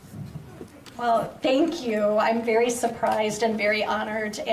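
An elderly woman speaks into a microphone over loudspeakers in an echoing room.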